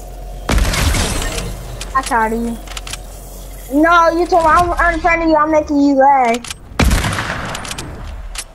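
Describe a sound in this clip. A gun fires loudly in bursts.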